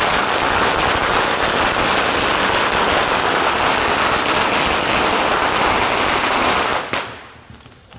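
Firecrackers crackle and bang in a dense, loud barrage.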